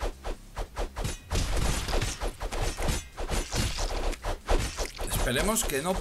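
Game swords slash and clang in quick hits.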